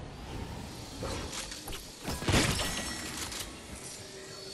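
A magical shimmering chime rings out and fades.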